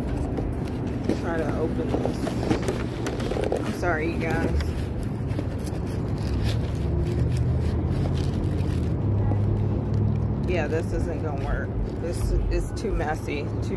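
A paper bag rustles and crinkles close by.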